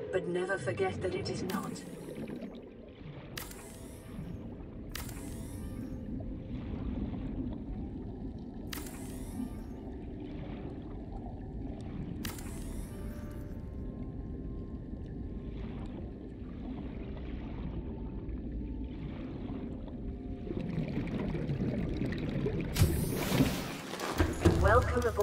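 Water rumbles steadily all around, as if underwater.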